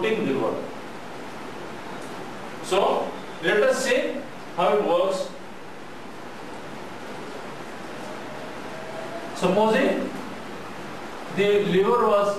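A man speaks calmly in short phrases, like a lecturer.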